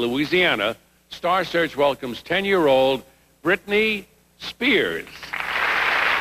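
An elderly man announces with animation into a microphone.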